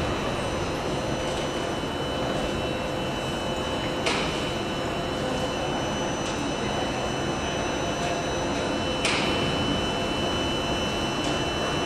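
Passengers' footsteps shuffle on the platform.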